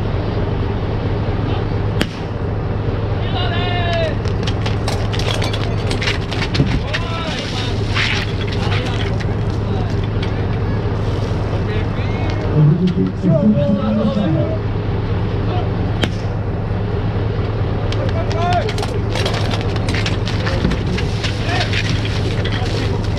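A crowd of men and women talk and cheer nearby.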